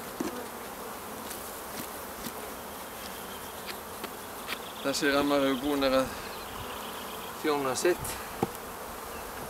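Wooden hive parts knock and scrape now and then.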